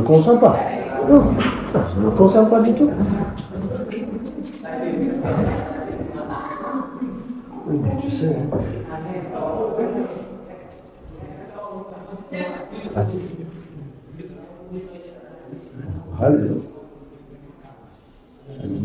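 A middle-aged man speaks nearby with animation.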